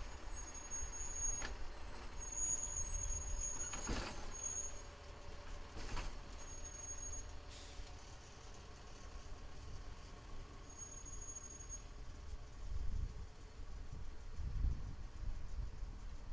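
A rail maintenance truck rolls slowly along the tracks.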